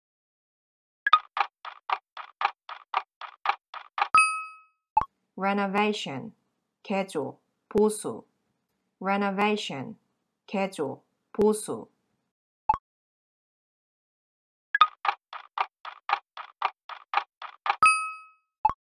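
A timer ticks quickly.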